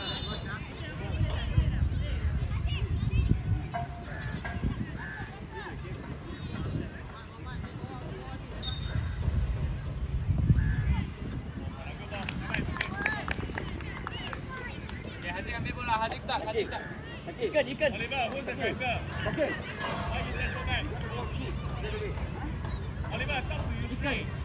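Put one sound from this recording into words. Children shout and call out excitedly across an outdoor field.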